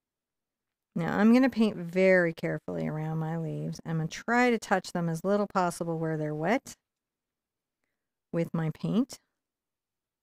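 A woman talks calmly into a microphone.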